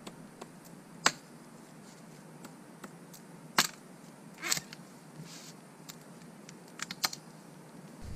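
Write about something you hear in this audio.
An axe chops into wood with sharp knocks.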